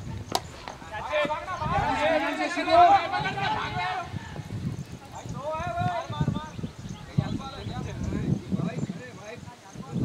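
Several young men shout loudly outdoors at a distance.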